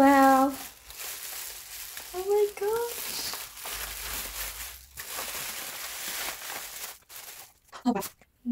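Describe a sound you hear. Plastic bubble wrap rustles and crinkles as it is handled.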